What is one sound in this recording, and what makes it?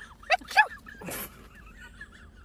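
A young woman sneezes loudly.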